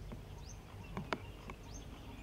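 A putter taps a golf ball softly.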